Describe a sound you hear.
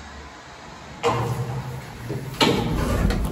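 A lift door bangs open.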